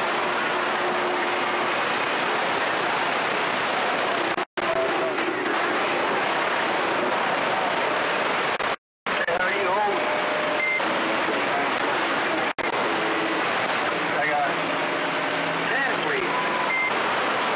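A radio receiver hisses loudly with static.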